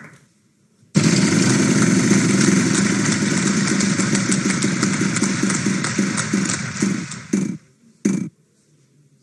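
A prize wheel spins with rapid ticking clicks that slow down.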